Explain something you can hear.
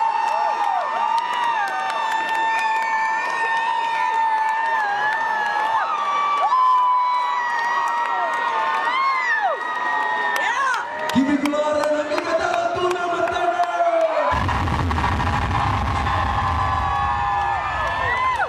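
A young man sings into a microphone over loud loudspeakers in a large echoing hall.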